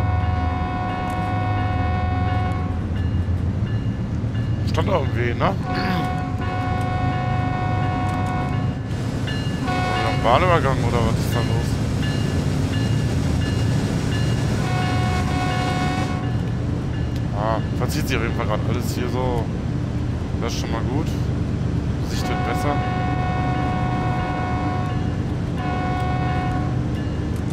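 Train wheels roll over the rails.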